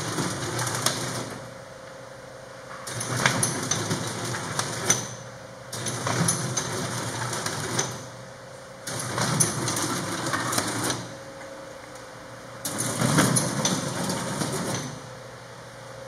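A machine whirs and clatters in repeated bursts, with sharp clicks of stapling.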